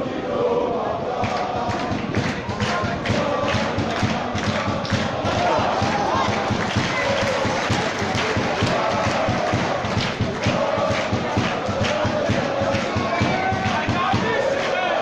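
Fans clap their hands in a fast rhythm.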